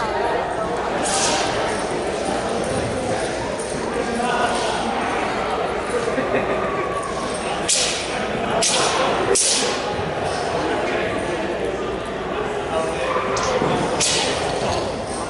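A staff swishes sharply through the air in a large echoing hall.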